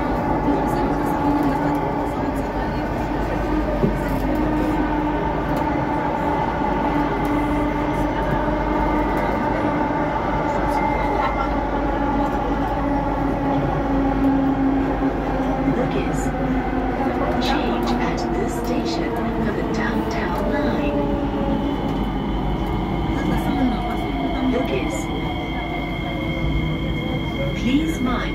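A train rumbles and hums steadily as it runs along the track.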